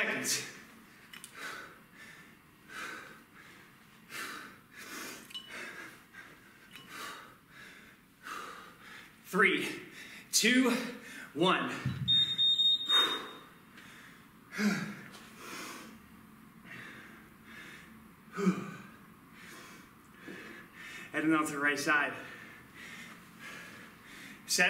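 A man breathes hard and rhythmically.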